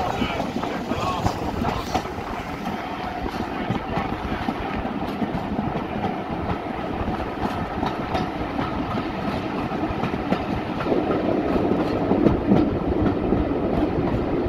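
Tyres rumble and bump over a rough dirt road.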